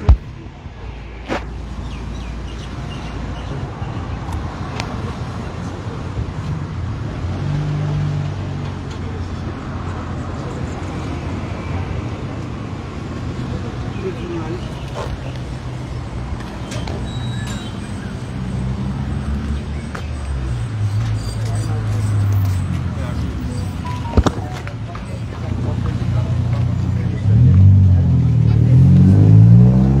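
A middle-aged man talks with animation outdoors.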